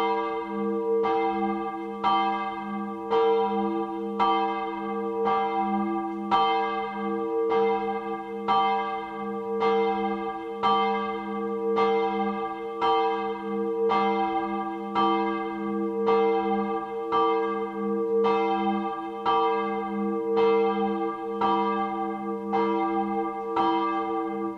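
A church bell rings steadily from a tower, each stroke ringing on.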